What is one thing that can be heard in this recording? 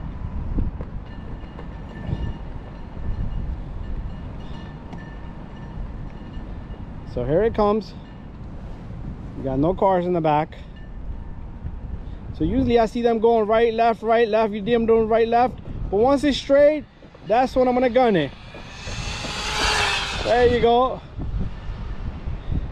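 Small tyres rumble over rough asphalt.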